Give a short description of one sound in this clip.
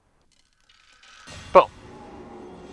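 A magical blast bursts with a loud whoosh.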